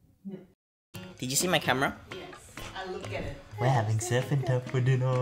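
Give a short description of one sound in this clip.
A young man talks playfully close by.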